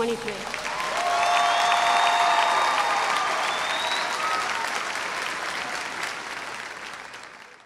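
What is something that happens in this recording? A large crowd cheers and screams outdoors, then fades away.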